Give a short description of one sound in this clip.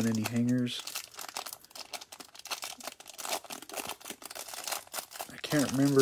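A plastic wrapper crinkles as it is torn open.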